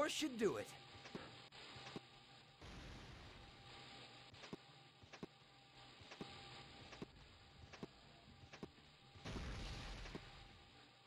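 Quick footsteps tap on a hard floor in a steady rhythm.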